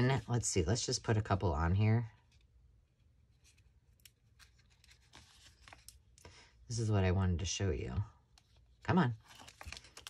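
Paper rustles softly as it is folded.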